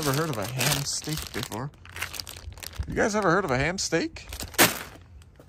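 Plastic wrapping crinkles as it is handled.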